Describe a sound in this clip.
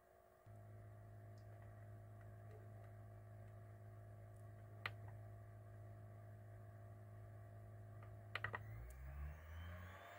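Buttons on a recorder click as they are pressed.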